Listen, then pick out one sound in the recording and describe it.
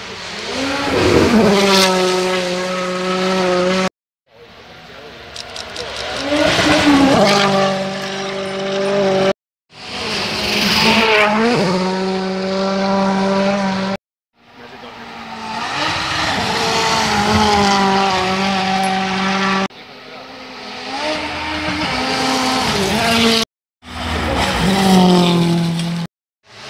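Rally car engines roar loudly as cars speed past, close by.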